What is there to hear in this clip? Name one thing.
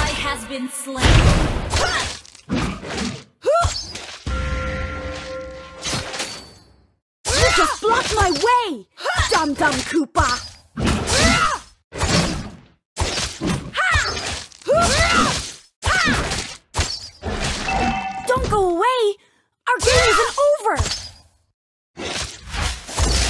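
Sharp fighting sound effects of blows and spells burst in quick succession.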